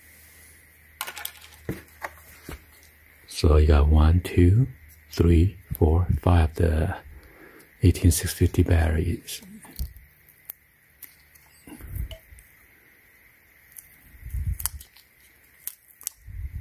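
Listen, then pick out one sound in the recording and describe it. Plastic parts click and rattle as they are handled up close.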